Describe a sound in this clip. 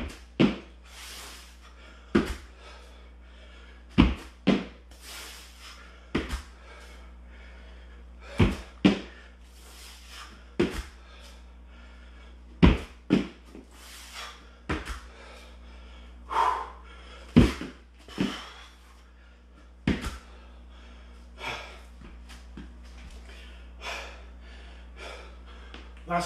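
A man breathes hard with exertion.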